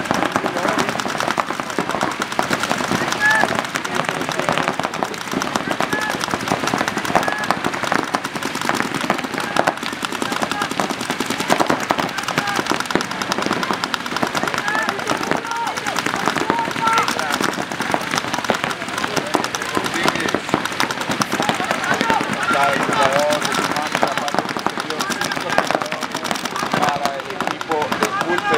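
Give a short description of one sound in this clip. Paintball guns fire in rapid bursts of sharp pops.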